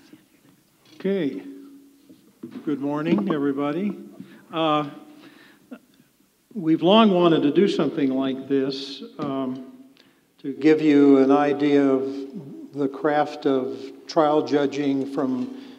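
An older man speaks calmly into a microphone in a large hall.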